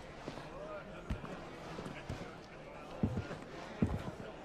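Heavy footsteps thud on a wooden floor.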